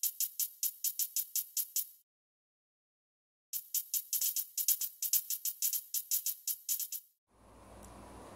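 Short electronic menu ticks sound in quick succession.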